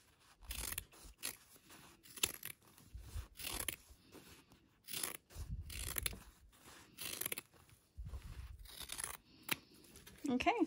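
Scissors snip through fabric again and again.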